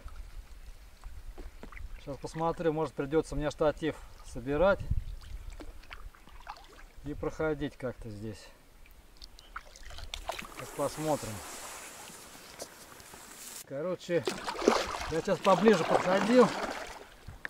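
Water laps softly against the hull of a gliding kayak.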